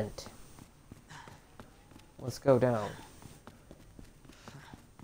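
Footsteps thud steadily down wooden stairs.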